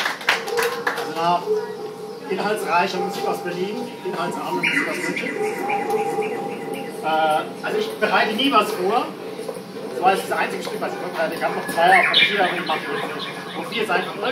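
A man talks with animation, close by.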